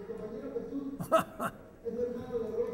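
An elderly man laughs briefly.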